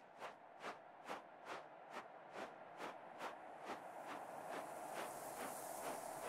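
Light footsteps patter quickly and evenly.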